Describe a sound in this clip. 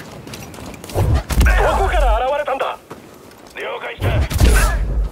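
Blows clash loudly in a fight.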